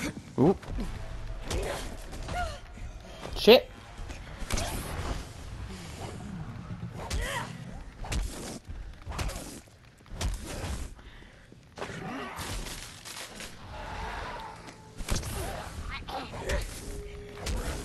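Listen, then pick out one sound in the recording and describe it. A monstrous creature growls and shrieks close by.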